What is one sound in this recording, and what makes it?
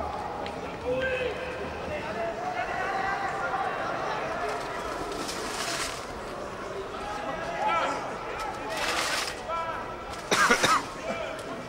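A crowd of spectators chatters nearby in an open stadium.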